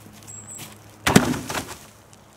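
A wooden pallet drops onto the ground with a thud.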